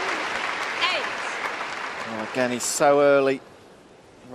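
A large crowd cheers and applauds in a big echoing hall.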